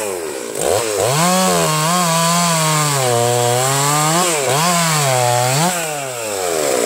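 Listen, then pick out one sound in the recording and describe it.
A chainsaw cuts into a log, its engine labouring.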